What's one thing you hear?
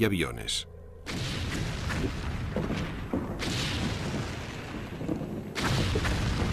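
Artillery guns fire with heavy booms.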